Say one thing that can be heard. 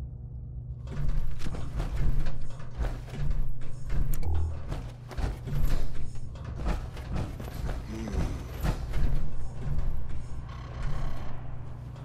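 Heavy armored footsteps clank on a hard floor.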